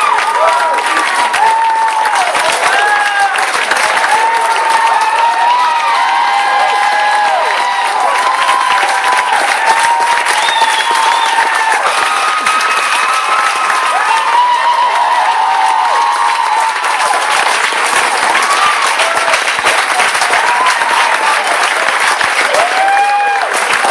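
A large crowd cheers, shouts and whistles close by.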